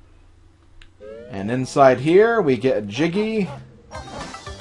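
A loud, cheerful game jingle plays.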